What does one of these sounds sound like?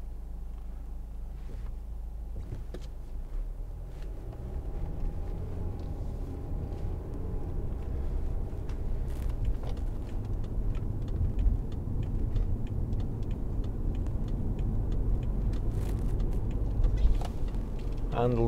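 A car engine hums and grows louder as the car speeds up.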